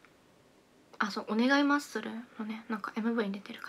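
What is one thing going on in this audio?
A young woman exclaims and speaks with animation close by.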